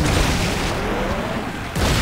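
A weapon fires with sharp blasts.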